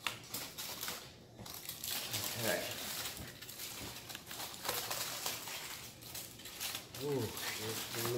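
Scissors snip through foil and paper.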